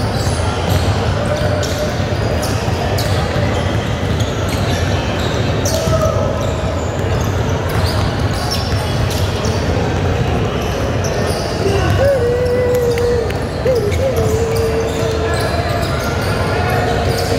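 Basketballs bounce on a hard wooden floor in a large echoing gym.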